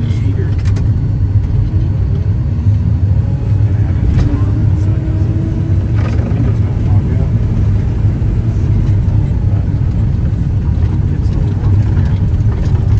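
A heavy truck engine rumbles loudly and steadily.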